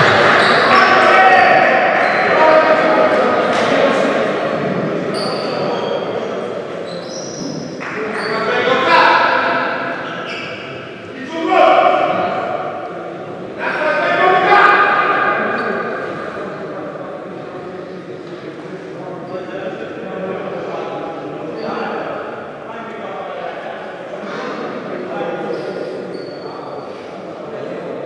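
A man talks to a group with animation in a large echoing hall.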